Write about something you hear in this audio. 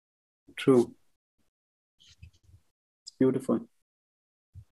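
An elderly man speaks with animation over an online call.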